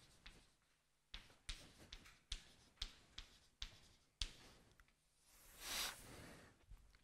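Chalk taps and clicks sharply against a blackboard.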